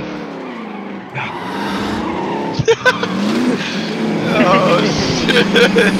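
Tyres screech as a vehicle skids.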